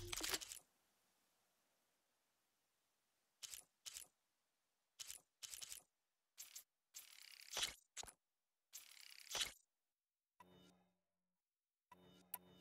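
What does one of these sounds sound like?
Menu interface sounds click and whoosh as items are selected.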